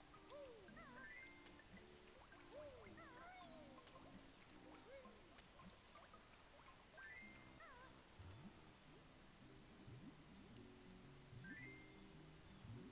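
A bright chime rings briefly several times.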